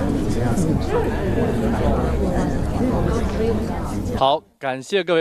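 A crowd of people chatters indoors.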